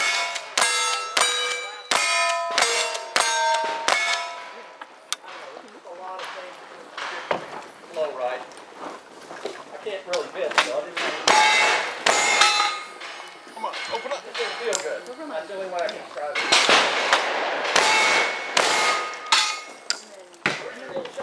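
Steel targets ring out with a metallic clang after each hit.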